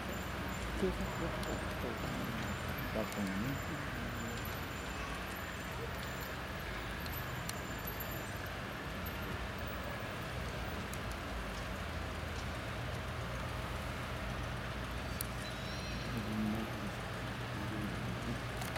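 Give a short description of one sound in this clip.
Car engines rumble low as open cars roll slowly through a large echoing hall.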